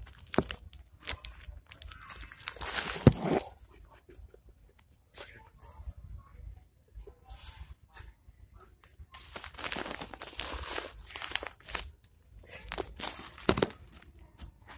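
Plastic packaging rustles and crinkles close by.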